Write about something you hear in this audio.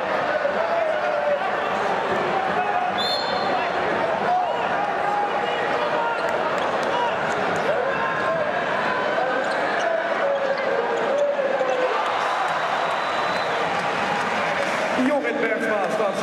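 A large crowd chants and cheers loudly in a big echoing arena.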